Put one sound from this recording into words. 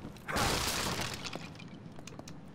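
Debris crashes down with a loud rumble.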